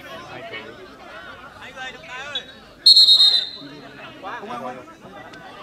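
Men shout and call out across an open field.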